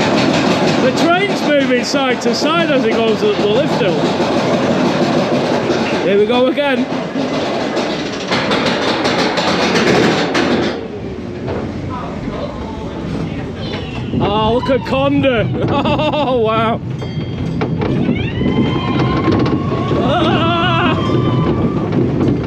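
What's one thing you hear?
Riders on a roller coaster scream and whoop with excitement.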